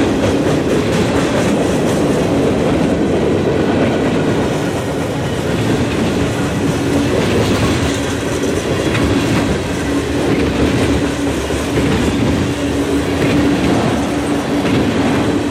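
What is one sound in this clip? Steel wheels clack and squeal on the rails.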